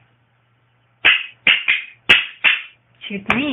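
Wooden toy castanets clack sharply several times.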